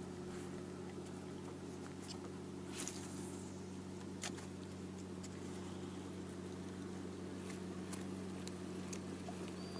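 Water laps softly against a boat's hull.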